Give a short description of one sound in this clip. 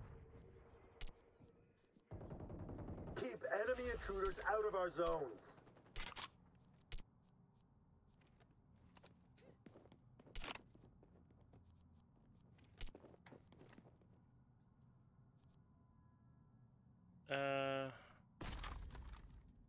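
Short soft clicks sound as menu options are selected.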